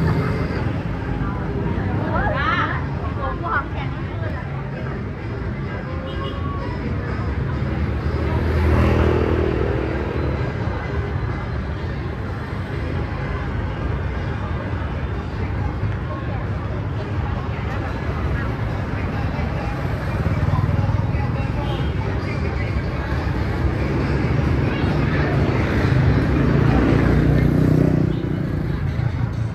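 Outdoors, a steady murmur of street traffic and passers-by fills the air.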